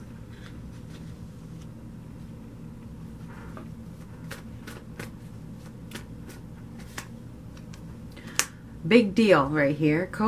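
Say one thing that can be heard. A card is laid down softly on a table.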